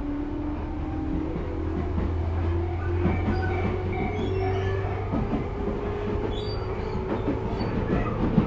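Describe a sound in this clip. A train's electric motor hums and whines.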